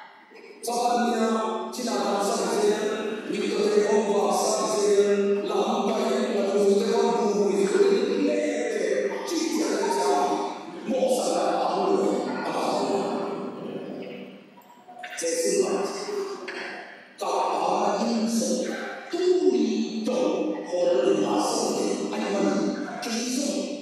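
A middle-aged man speaks with animation into a microphone over loudspeakers in an echoing hall.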